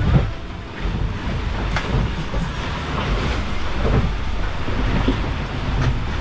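The cabin of a small boat creaks and knocks as it rolls.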